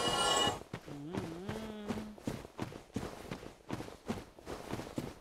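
Armoured footsteps thud steadily on stone.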